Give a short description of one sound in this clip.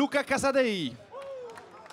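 A man speaks loudly and with animation, close by.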